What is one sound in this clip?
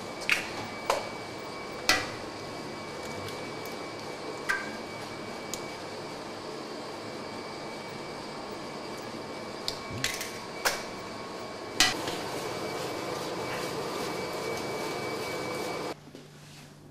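A mixing machine whirs steadily.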